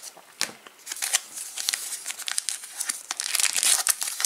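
A foil wrapper crinkles and crackles as it is torn open.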